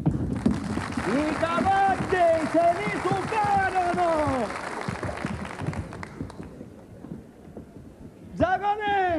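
A man sings loudly in a full, ringing voice.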